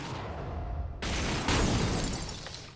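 Metal grinds and screeches harshly.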